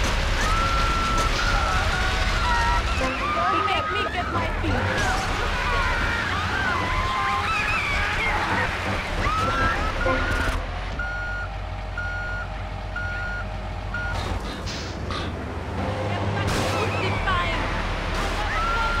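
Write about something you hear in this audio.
A fire truck engine rumbles steadily.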